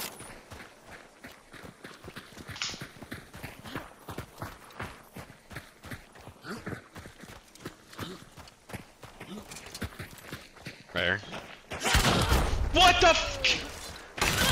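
Footsteps crunch on gravel and rocks.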